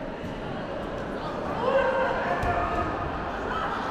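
A judo competitor lands with a thud on the mat.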